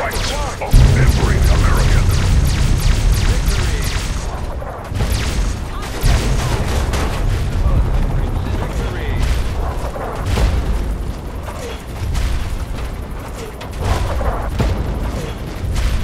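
Explosions rumble deeply.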